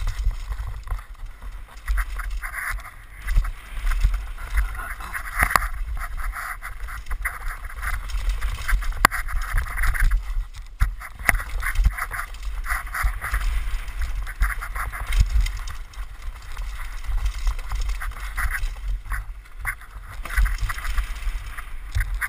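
Tyres of a downhill mountain bike rattle and crunch over a rocky dirt trail.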